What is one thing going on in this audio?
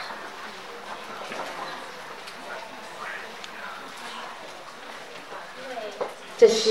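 Several adults talk quietly in a room.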